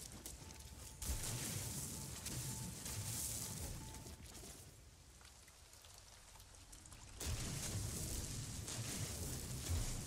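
A mining laser hisses and crackles as it cuts into rock.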